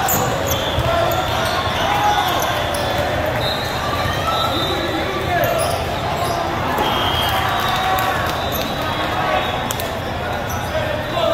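A large hall echoes with the chatter of a crowd.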